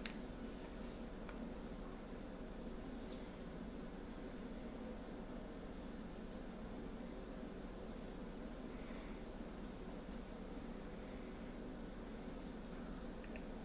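A small glass bottle clicks softly as it is picked up and its cap is twisted.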